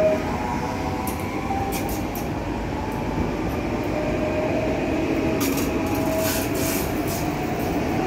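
A train's wheels clatter and rattle on the rails as it passes close by.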